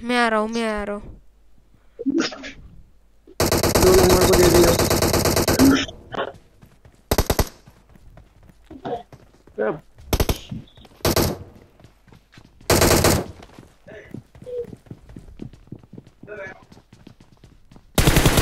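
Footsteps run over dry ground and hard floors.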